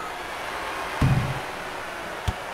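A basketball strikes the rim with a heavy thud.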